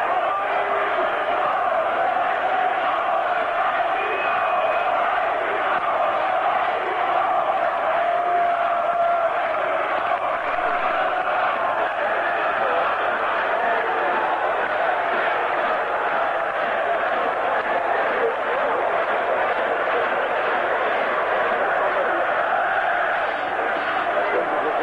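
A large stadium crowd roars and chants loudly throughout.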